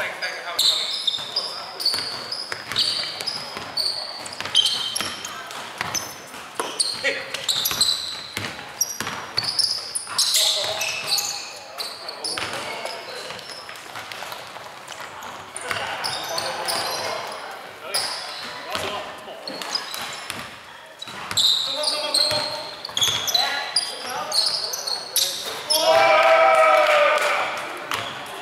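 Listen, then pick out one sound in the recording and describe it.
Sneakers squeak sharply on a wooden floor in an echoing hall.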